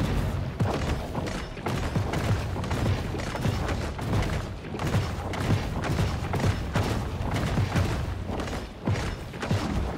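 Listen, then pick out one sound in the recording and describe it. Footsteps thud quickly on wooden stairs.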